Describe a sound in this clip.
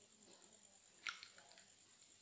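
An egg cracks against the rim of a glass bowl.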